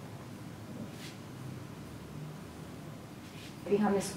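A comb brushes softly through long hair.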